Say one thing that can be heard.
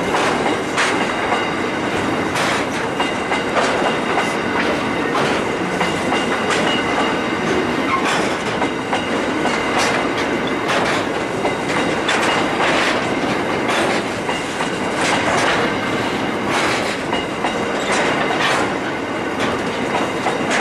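Coal hopper wagons rumble past close by.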